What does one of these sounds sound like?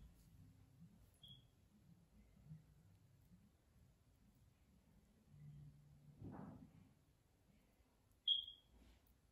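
Fingers rub and squeeze a soft rubbery toy with faint squelching.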